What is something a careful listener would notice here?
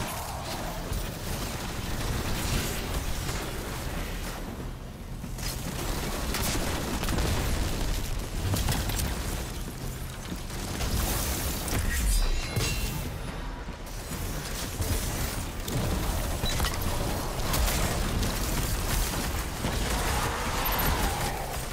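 Heavy guns fire in rapid bursts.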